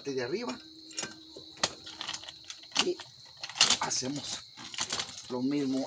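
Metal clinks and taps as a wheel is worked on by hand.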